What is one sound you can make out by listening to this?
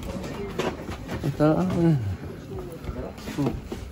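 Cloth rustles as a man pulls a shirt over his head.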